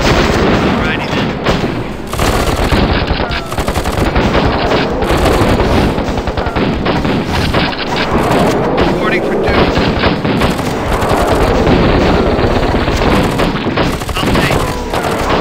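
Gunfire rattles rapidly in a loud battle.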